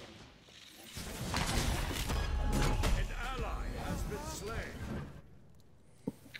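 Game combat sounds clash and boom.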